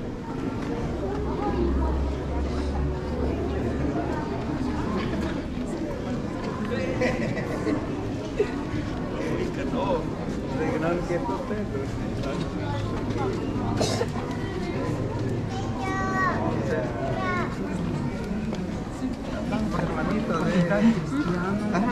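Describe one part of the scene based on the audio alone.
A crowd of men and women chatters all around in a large echoing hall.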